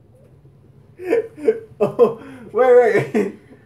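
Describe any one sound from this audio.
A young man laughs loudly nearby.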